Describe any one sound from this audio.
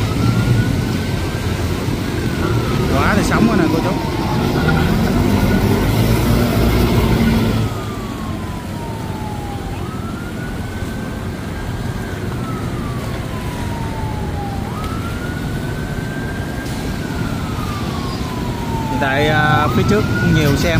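A van engine rumbles close by.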